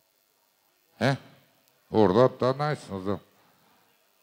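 A man speaks loudly and with animation through a microphone in a large echoing hall.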